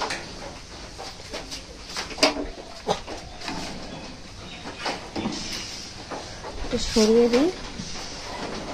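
Wooden window shutters knock and rattle.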